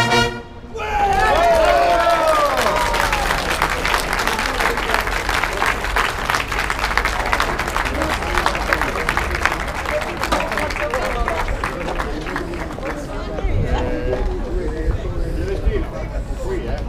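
Snare drums rattle in a quick marching rhythm.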